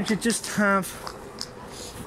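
Footsteps tap on paving stones nearby.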